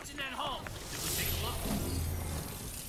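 A creature bursts apart with a crackling hiss.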